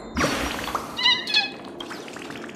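A small bird chirps brightly.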